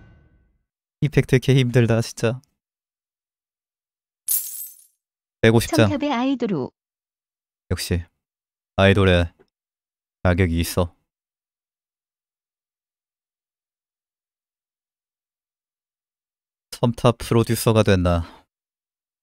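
A young man talks with animation into a microphone, in short bursts.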